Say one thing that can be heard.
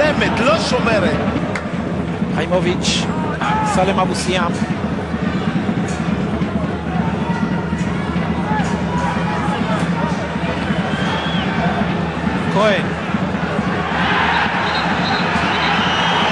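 A large crowd chants and cheers steadily in a stadium.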